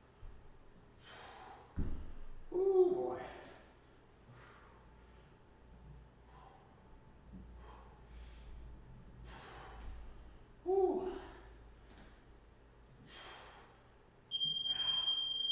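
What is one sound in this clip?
A man breathes out hard with effort during exercise.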